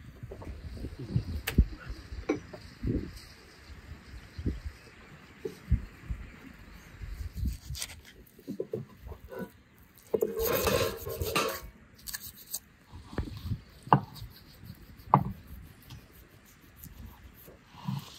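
A knife knocks on a wooden board.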